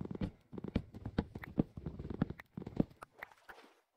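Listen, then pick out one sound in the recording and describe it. Blocks break with quick, dull knocks.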